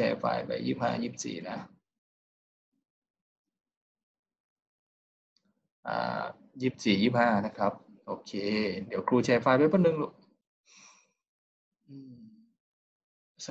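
A young man speaks calmly through an online call, with pauses.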